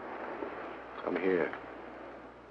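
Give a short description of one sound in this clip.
A woman speaks quietly and tensely nearby.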